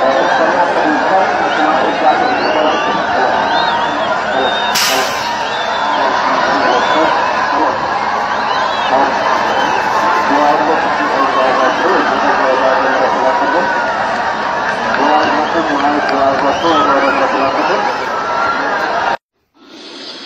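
A huge crowd outdoors cheers and shouts in a loud, steady roar.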